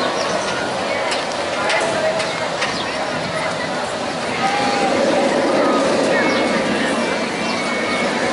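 Riders scream on a roller coaster in the distance.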